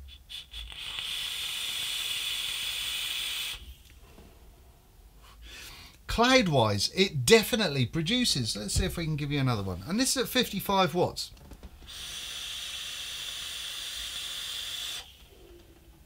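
A vape device hisses steadily as a man draws on it.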